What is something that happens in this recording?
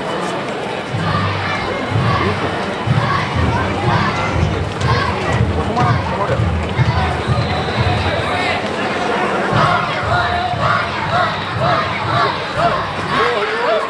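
Men in a festival procession chant loudly in rhythm.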